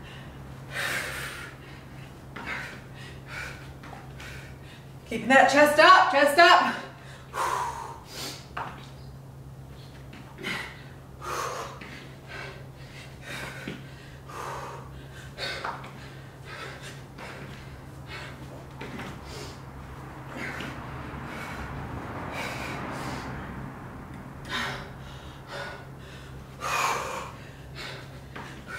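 Feet thump and shuffle on a floor mat.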